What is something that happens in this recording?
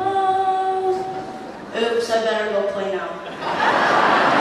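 A man sings through a microphone.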